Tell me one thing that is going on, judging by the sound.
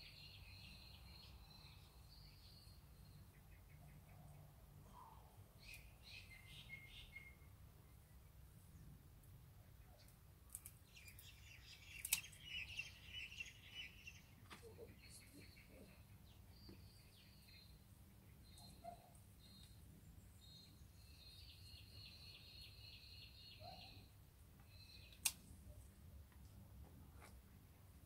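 Leaves and stems rustle and snap softly close by.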